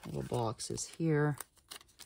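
A sticker peels off a backing sheet.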